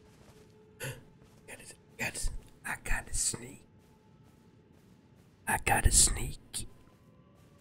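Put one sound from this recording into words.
Footsteps rustle through grass with armour clinking.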